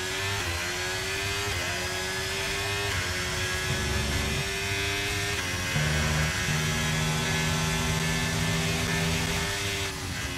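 A racing car engine roars at high revs, its pitch climbing and dropping with each gear change.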